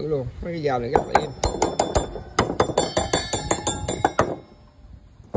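Metal knives clink and tap as they are handled.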